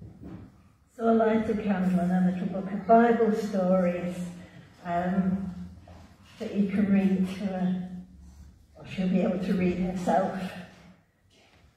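A woman speaks through a loudspeaker in an echoing hall, pausing between phrases.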